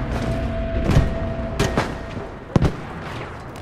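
An explosion booms nearby.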